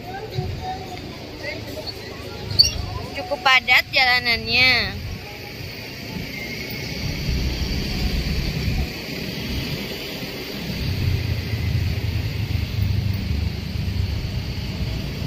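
A car engine rumbles low.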